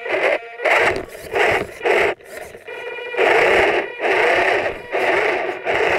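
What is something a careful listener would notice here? Small tyres crunch over gravel.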